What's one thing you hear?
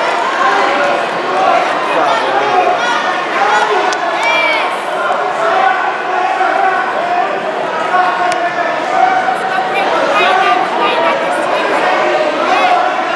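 A crowd of spectators chatters and calls out in an echoing hall.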